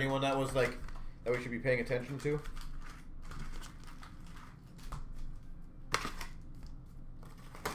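A cardboard box knocks and scrapes as hands handle it.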